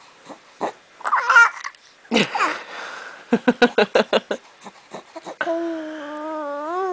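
A baby coos and babbles.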